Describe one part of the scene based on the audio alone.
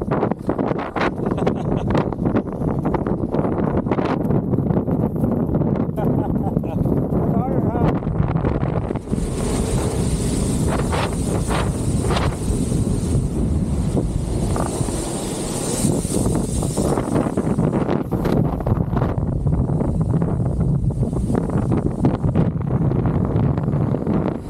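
Wheels rumble over sand.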